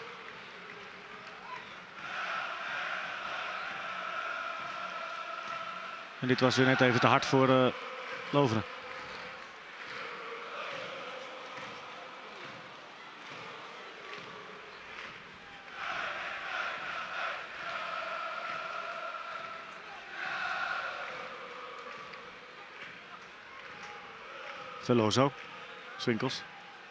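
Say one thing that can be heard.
A large crowd sings and chants across an open stadium.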